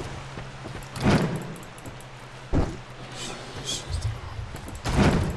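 Heavy footsteps thud slowly on the ground.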